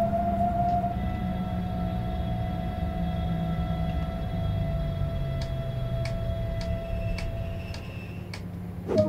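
An electric train's motor hums and whines as the train slows to a stop.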